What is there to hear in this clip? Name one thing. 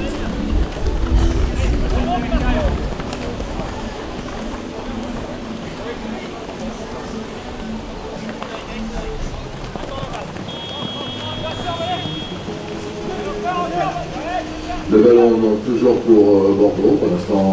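Horses gallop with muffled hoofbeats on soft sand.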